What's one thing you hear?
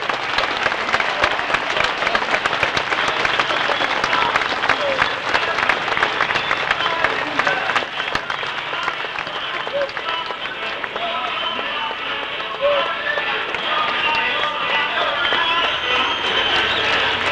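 A large crowd cheers and claps loudly all around.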